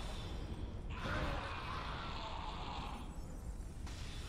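A fiery explosion bursts with a roar.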